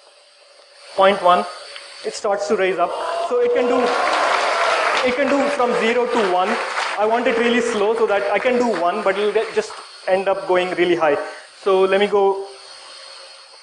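A young man speaks with animation through a microphone in a large echoing hall.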